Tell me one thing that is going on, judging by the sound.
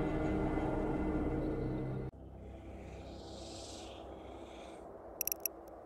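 Heavy game music plays loudly, then drops to a quieter, muffled hum.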